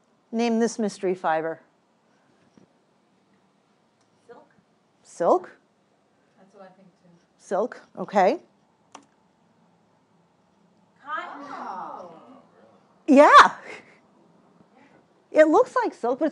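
A young woman speaks through a microphone, pausing between phrases.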